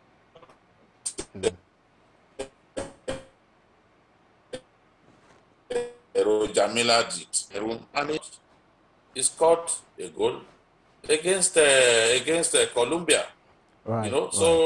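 A man speaks with animation over a remote call link.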